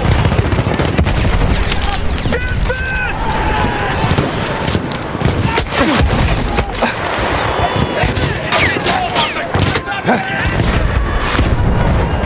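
Rifle shots crack sharply at close range.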